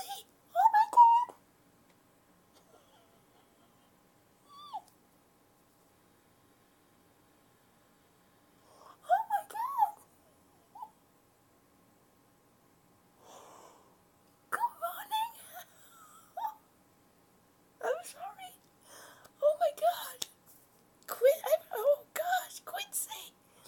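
A young woman squeals and shrieks excitedly close by.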